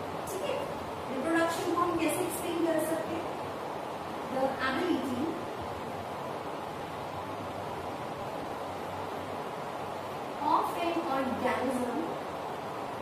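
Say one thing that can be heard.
A woman speaks calmly in a slow, explaining way, close by.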